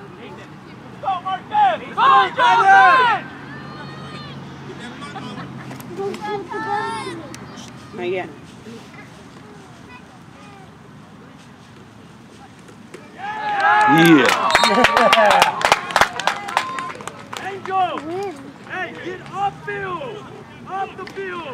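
Men and boys shout and cheer nearby outdoors.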